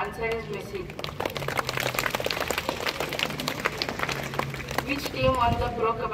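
Students clap their hands in applause outdoors.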